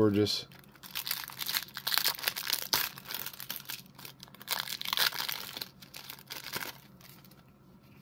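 Plastic wrapping crinkles and rustles as hands tear it open.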